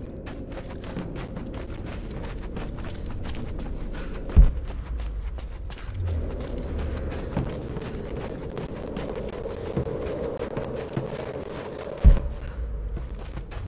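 Footsteps crunch on gravel and snow.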